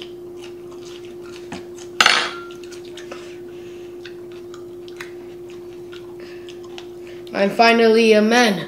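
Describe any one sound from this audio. Food crunches and clicks softly as people eat.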